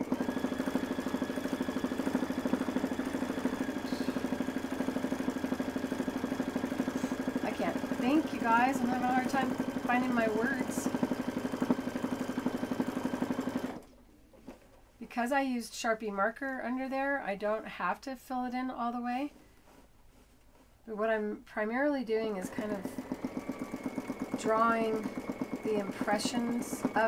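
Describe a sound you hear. A sewing machine stitches with a fast, steady rattling hum, pausing for a while before starting again.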